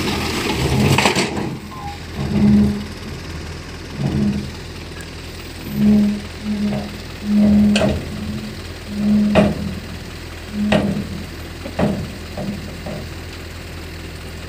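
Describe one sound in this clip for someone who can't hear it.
A truck engine rumbles steadily and revs in short bursts.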